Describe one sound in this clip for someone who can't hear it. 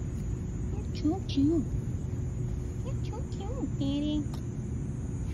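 A kitten meows close by, several times.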